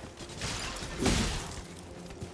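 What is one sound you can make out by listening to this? A blade slashes and strikes flesh.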